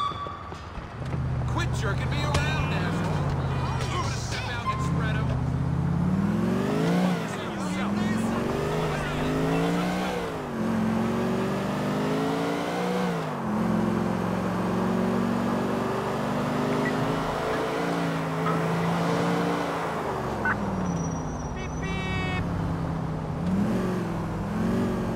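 A car engine revs and shifts up through the gears as the car speeds along.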